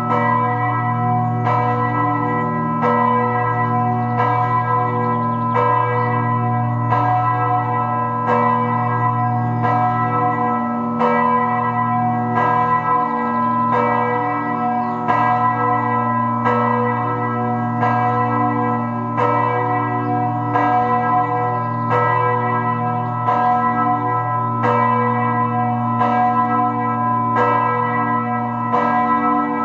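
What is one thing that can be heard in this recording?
Church bells ring in a slow, steady rhythm, each stroke humming on into the next.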